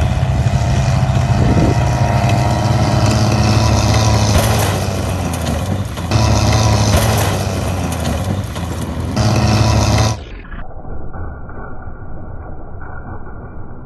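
A tank engine roars loudly.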